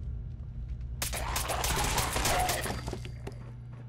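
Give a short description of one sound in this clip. A laser rifle fires with a sharp crackling blast.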